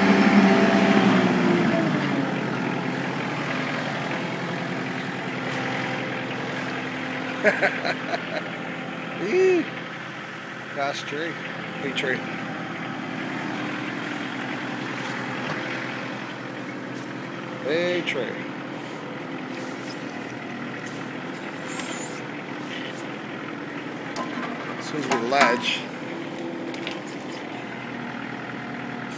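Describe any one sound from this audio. A diesel engine idles steadily close by.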